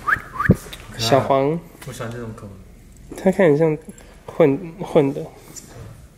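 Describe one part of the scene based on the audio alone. A young man talks softly and affectionately close by.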